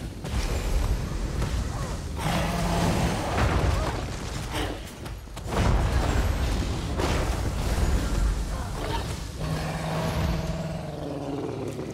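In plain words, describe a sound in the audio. A monster roars and growls.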